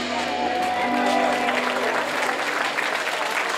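Music plays outdoors over loudspeakers at the start.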